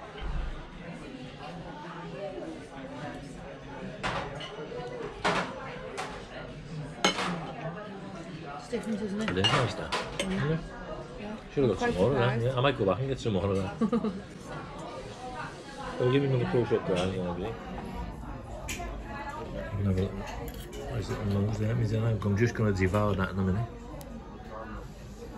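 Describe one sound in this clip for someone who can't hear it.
Cutlery clinks and scrapes on plates.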